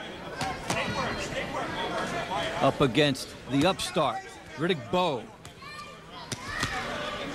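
Boxing gloves thud against a body in sharp blows.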